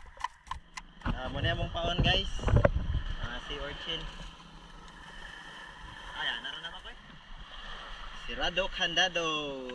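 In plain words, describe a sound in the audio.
Sea water splashes against a boat.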